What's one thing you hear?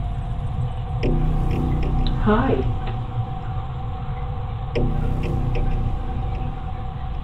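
An older woman speaks quietly nearby.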